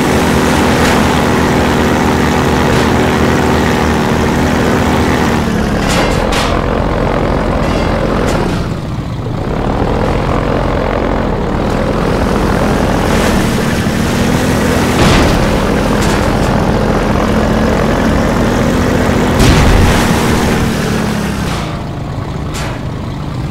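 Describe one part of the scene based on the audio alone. An airboat engine drones loudly, its pitch rising and falling.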